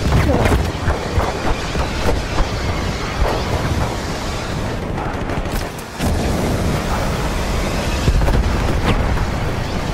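Explosions burst.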